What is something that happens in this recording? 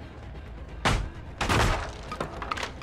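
Wooden planks crash and clatter.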